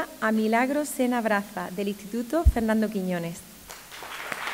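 A woman speaks into a microphone with animation, heard through a loudspeaker in an echoing hall.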